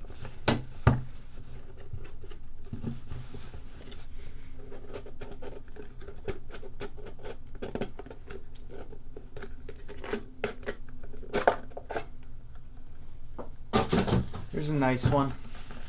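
A cardboard box lid scrapes and taps as hands open it.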